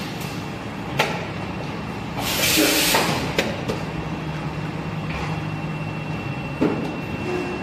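A mould opens and closes with a hiss and a clunk.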